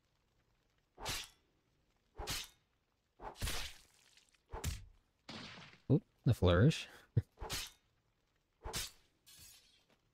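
A blade whooshes through the air again and again.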